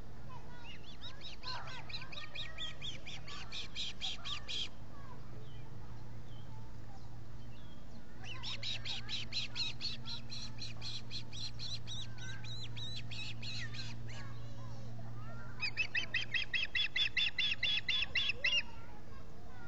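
Young birds of prey chirp in rapid, high-pitched bursts, close by.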